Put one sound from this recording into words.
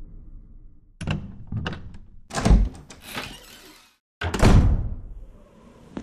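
A heavy wooden door creaks open and thuds shut.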